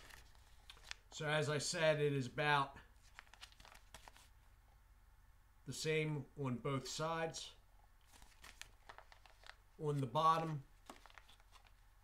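A paper packet crinkles in a man's hands.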